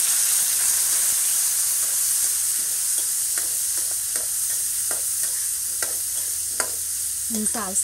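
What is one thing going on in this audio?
A spatula scrapes and knocks against a pan.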